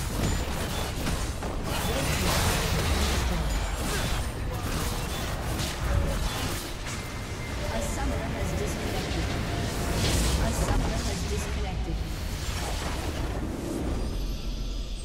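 Game spell effects blast and crackle in a busy battle.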